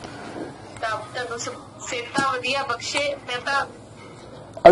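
A young woman speaks through a phone on a video call.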